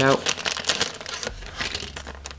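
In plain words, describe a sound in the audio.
Plastic packaging and paper rustle and crinkle as they are handled.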